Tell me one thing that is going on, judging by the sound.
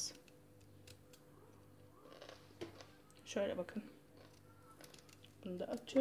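Pieces of food drop into a plastic jar with soft thuds.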